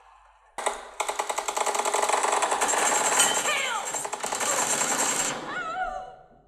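Rapid gunfire rattles from a game through a small speaker.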